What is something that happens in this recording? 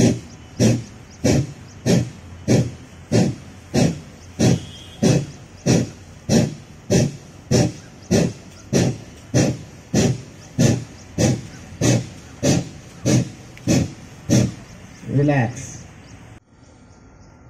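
People exhale sharply through the nose in a quick, steady rhythm.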